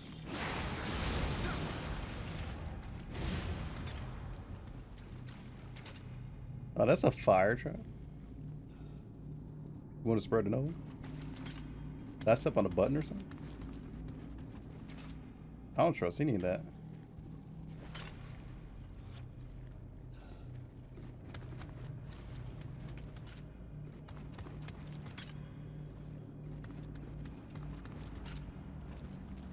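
Footsteps clatter on a stone floor.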